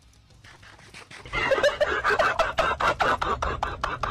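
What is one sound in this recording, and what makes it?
Crunchy chewing sounds repeat quickly.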